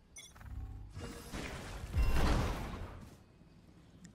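A magical ability whooshes loudly in a game.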